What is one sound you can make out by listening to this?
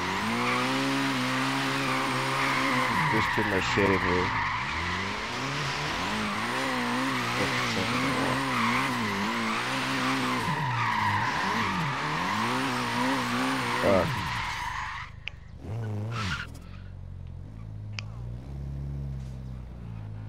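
A car engine revs hard, rising and falling.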